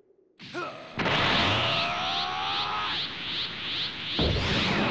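A rushing whoosh sweeps past.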